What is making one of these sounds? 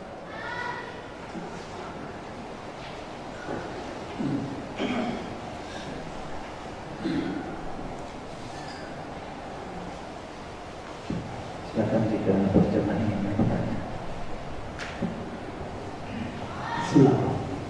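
A man speaks calmly into a microphone, in a slightly echoing room.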